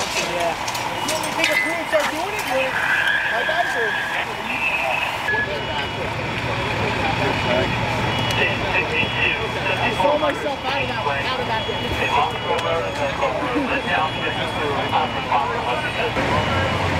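Several men talk among themselves outdoors, close by.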